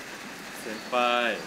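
A young man speaks up loudly nearby.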